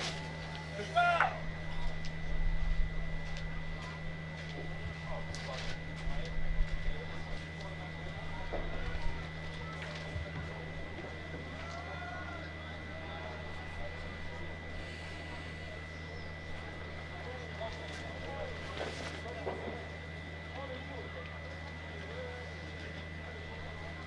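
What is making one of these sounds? Men talk quietly nearby outdoors.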